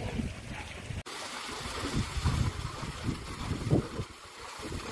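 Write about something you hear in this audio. A stream of water splashes into a pool.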